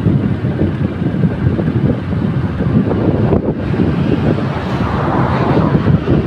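A truck passes by on the road.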